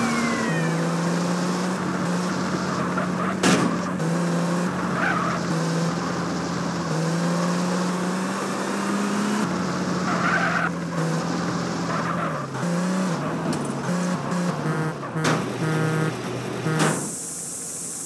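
A car engine drones steadily and shifts pitch as the car speeds up and slows.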